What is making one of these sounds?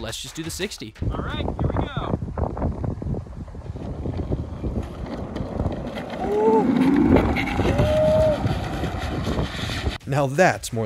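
Small plastic wheels rumble over rough asphalt.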